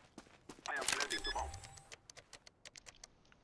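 A keypad beeps in short electronic tones.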